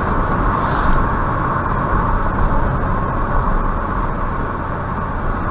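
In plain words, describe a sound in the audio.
Tyres hum steadily on an asphalt road from inside a moving car.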